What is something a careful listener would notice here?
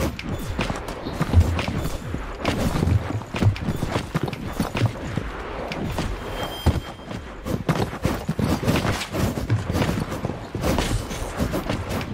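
Blunt weapons swing and strike with heavy thuds during a fight.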